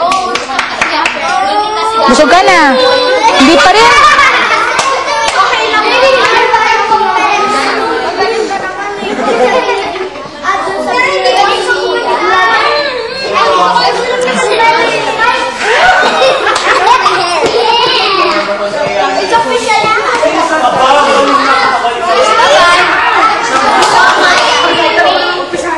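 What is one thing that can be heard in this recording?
Several people chatter and laugh in the background.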